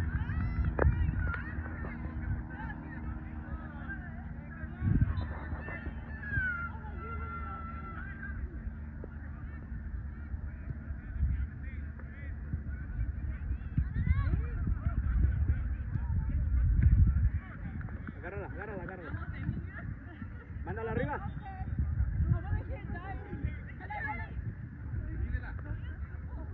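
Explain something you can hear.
Wind rumbles across a microphone outdoors.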